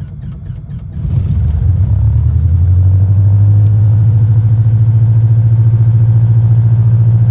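A propeller engine coughs to life and settles into a steady, loud drone.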